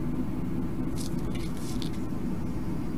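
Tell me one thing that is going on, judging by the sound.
Small parts click and rustle faintly under handling fingers.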